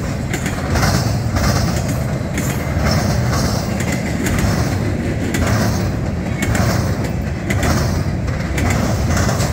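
Train wheels clatter in a regular rhythm over rail joints.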